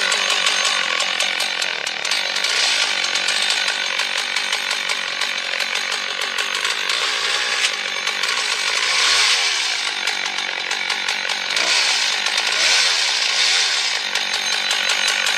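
A chainsaw engine roars loudly and steadily while cutting through wood.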